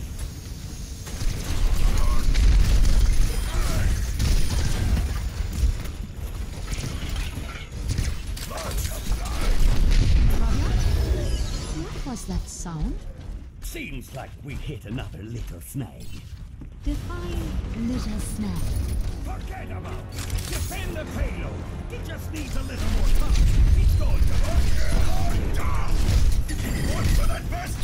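Energy weapons fire in rapid bursts with loud zapping blasts.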